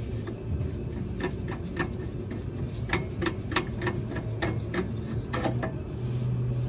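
A metal oil filter clicks and scrapes as it is unscrewed by hand.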